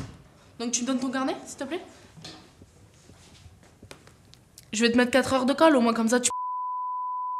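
A young woman talks nearby with animation.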